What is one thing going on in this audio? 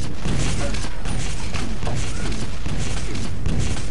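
A rocket explodes with a deep boom.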